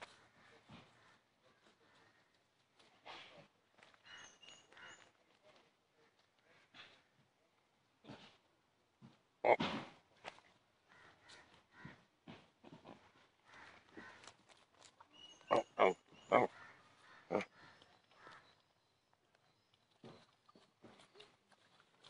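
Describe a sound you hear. Pigs grunt and snuffle close by.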